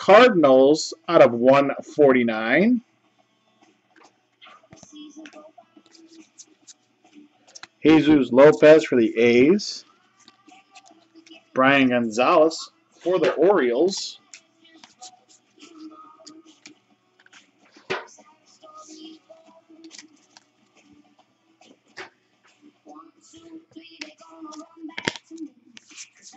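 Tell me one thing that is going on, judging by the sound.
Stiff cards rustle and slide against each other.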